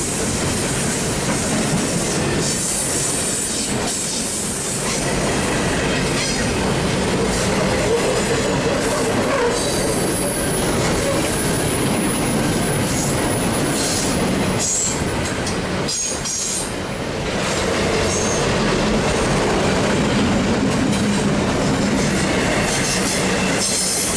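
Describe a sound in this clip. A long freight train rumbles steadily past nearby.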